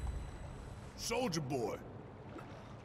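A man shouts out loudly.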